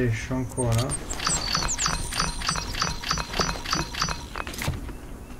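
Game menu clicks and chimes sound in quick succession.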